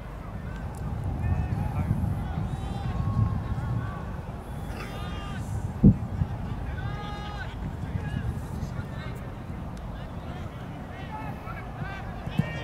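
Young men shout to each other from across an open field.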